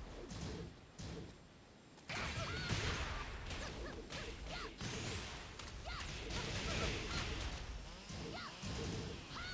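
Punches and kicks land with heavy thuds and sharp cracks.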